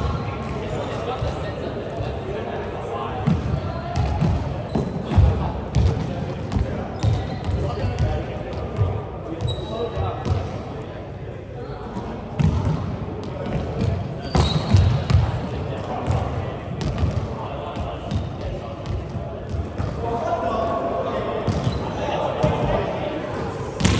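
Young adults call out to each other in a large echoing hall.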